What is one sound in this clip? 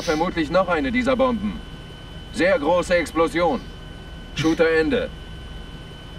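A man speaks calmly over a helmet radio.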